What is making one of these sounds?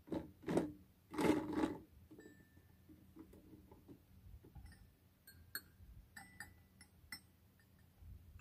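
Hands knock and rattle plastic parts of a toy box.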